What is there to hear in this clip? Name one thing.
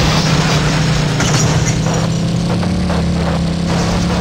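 Cars crash together with a loud metallic bang.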